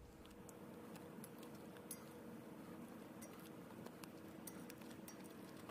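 Ice cubes drop and clink into a cup of liquid.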